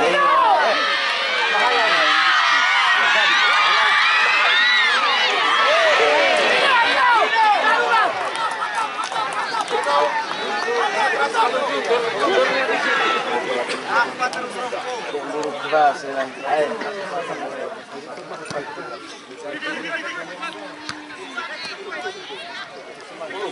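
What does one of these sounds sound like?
A large crowd shouts and cheers outdoors, loudest at first and then calming down.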